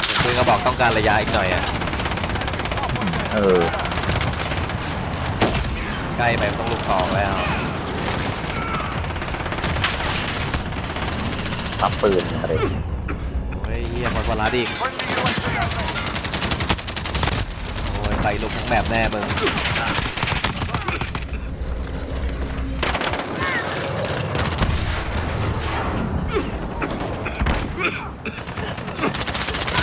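Shotguns fire in loud, sharp blasts.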